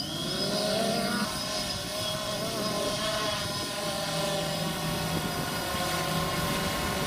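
A drone's propellers buzz and whine steadily overhead.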